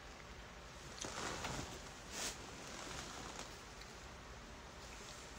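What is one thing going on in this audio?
A tissue rustles close by.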